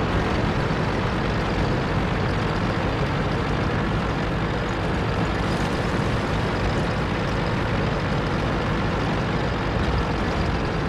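Tank tracks clatter and grind over the ground.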